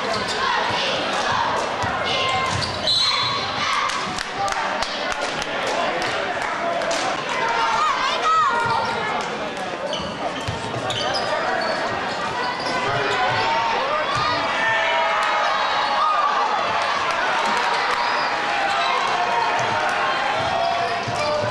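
A crowd cheers and chatters throughout a large echoing gym.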